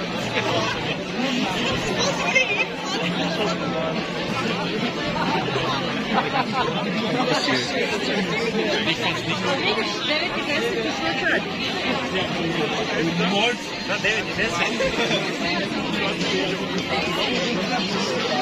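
A large outdoor crowd chatters all around, with many voices mixing.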